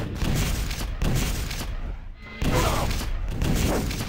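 Rockets explode with loud booms.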